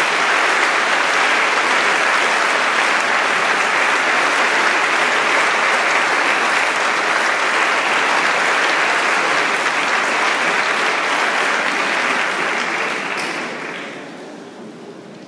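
An audience applauds loudly in a large echoing hall, then the applause dies away.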